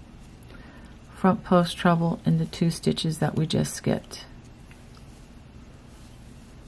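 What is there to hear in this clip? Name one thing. A crochet hook softly draws yarn through loops.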